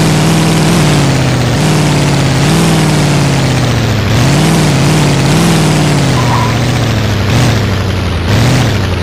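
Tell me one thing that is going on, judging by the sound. A buggy's engine drones and revs up and down.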